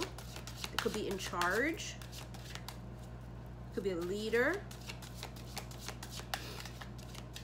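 Playing cards flick and riffle as they are shuffled.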